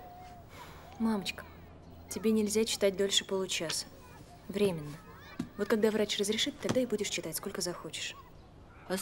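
A young woman speaks gently and reassuringly.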